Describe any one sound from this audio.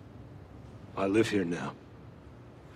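A man speaks a few quick words close by.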